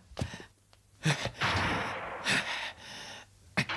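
A man exclaims in surprise.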